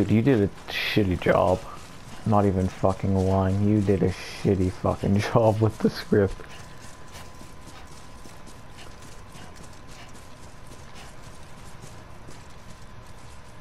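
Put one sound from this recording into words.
Footsteps thud quickly on soft grass.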